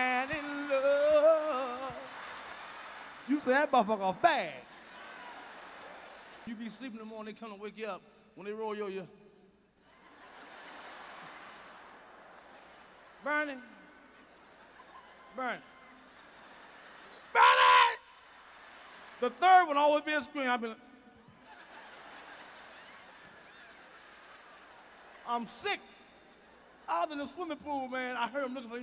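A man speaks animatedly into a microphone, at times shouting.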